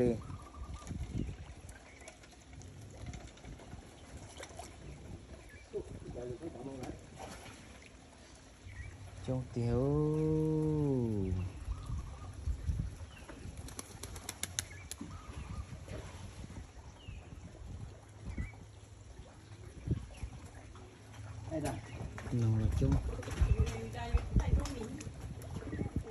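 Water laps gently against a wooden dock.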